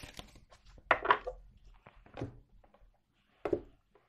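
A deck of cards is tapped down on a table.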